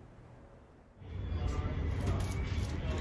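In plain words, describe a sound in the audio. Paper wrapping rustles and crinkles as flowers are handled.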